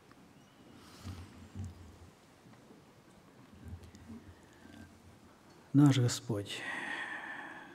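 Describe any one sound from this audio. An elderly man speaks slowly and calmly through a microphone in a large room.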